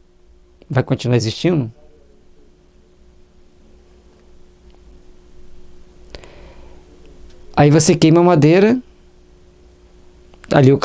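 A middle-aged man speaks calmly and clearly into a microphone, with pauses.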